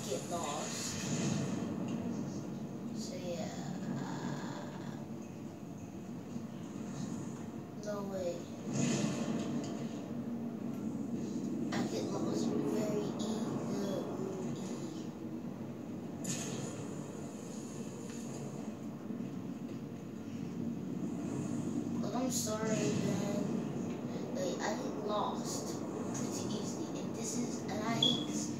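Game sounds rumble and whoosh steadily from a television speaker.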